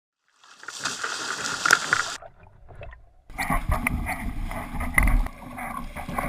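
Waves splash and slap against a small boat in rough water.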